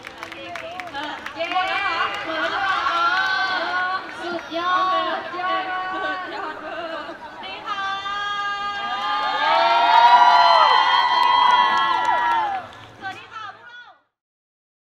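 Young women talk and laugh brightly through microphones.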